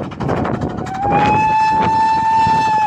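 A steam train whistle blows long and steady.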